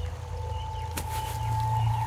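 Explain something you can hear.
A plastic sheet rustles as a man pushes through it.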